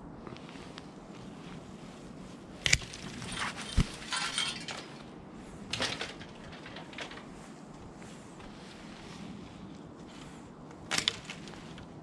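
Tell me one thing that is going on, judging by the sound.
Pruning shears snip through small branches with sharp clicks.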